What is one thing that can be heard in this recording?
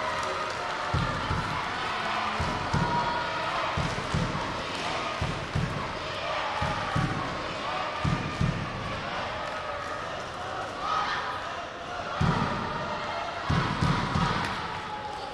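Bare feet thump on a padded mat.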